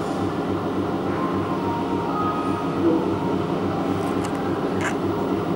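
An arcade game machine plays lively electronic music with beeping sound effects.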